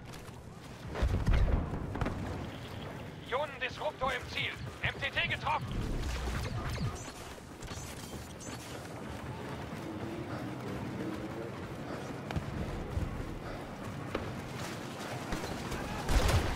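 Explosions and gunfire rumble in a battle nearby.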